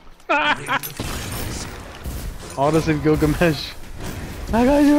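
Spell blasts crackle and boom in a fight.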